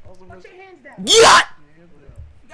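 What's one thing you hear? A young woman shrieks loudly.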